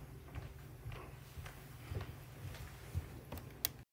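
A chair creaks softly as a man sits down in it.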